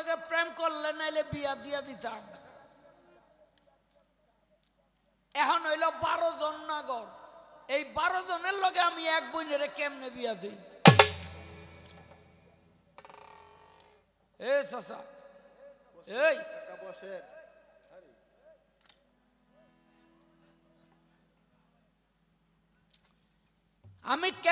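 A fiddle plays along with a man's singing.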